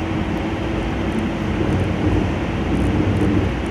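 Train wheels clatter over points.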